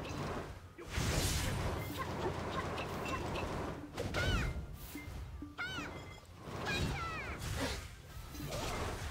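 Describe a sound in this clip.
A sword swings and slashes with whooshing strikes.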